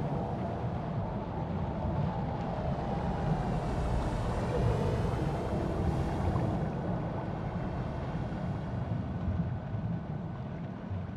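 Muffled water rushes steadily past a diver swimming deep underwater.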